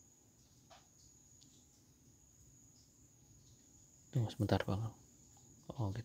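A finger taps lightly on a phone's touchscreen.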